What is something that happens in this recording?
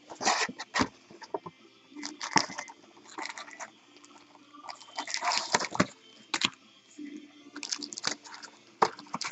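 Foil card packs rustle and click as they are handled.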